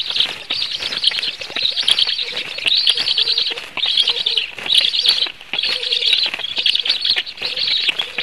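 Large wings flap and rustle.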